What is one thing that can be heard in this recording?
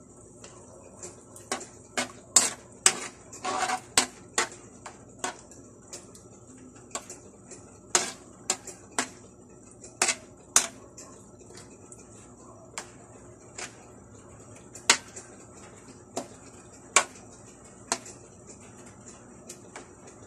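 A metal spoon clinks and scrapes against a metal pan.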